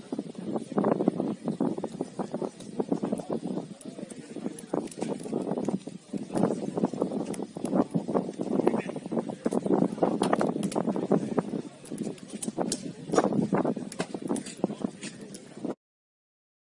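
Hands slap together as players shake hands and clap.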